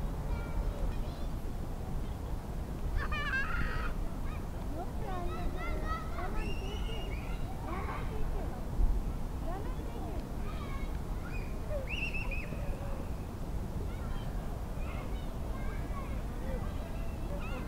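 Young men shout to each other far off outdoors.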